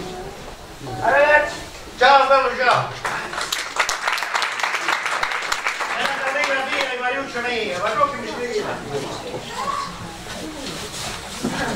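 A man speaks loudly and theatrically in an echoing hall.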